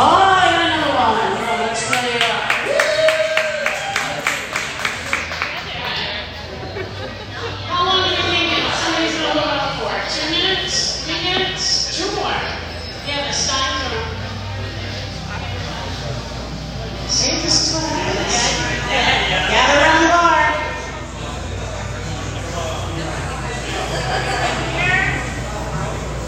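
A woman speaks with animation into a microphone, heard over a loudspeaker in an echoing room.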